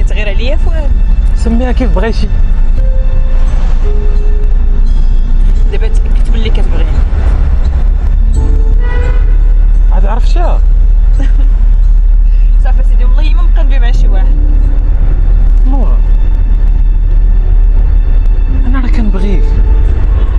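A car engine hums steadily inside the car.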